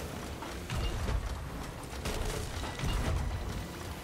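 A cannon fires with a loud boom.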